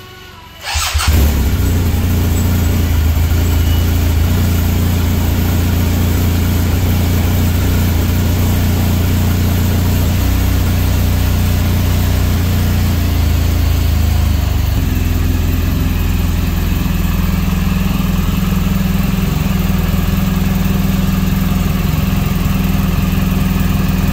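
A motorcycle engine idles with a steady, deep rumble close by.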